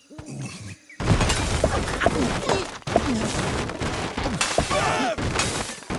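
Wooden blocks crash and clatter as a structure collapses.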